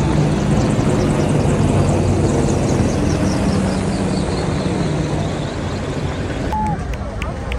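Helicopters thud loudly overhead.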